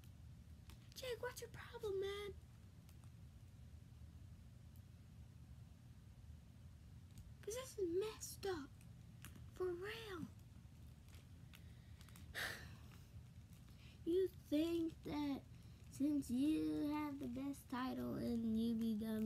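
A young boy speaks close to the microphone, in short bursts with pauses.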